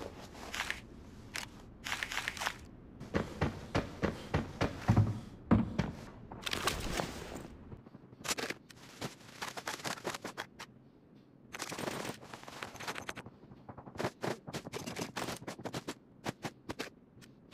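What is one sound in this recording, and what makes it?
Inventory items click and rattle as they are moved.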